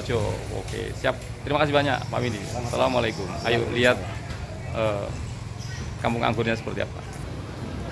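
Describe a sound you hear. A middle-aged man talks cheerfully close to the microphone.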